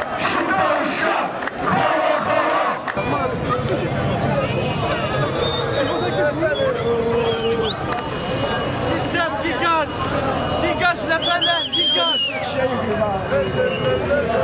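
A large crowd chants and shouts loudly outdoors.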